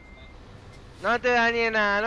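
A truck air horn blares loudly.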